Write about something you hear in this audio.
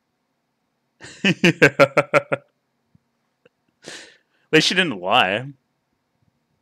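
A young man laughs heartily close to a microphone.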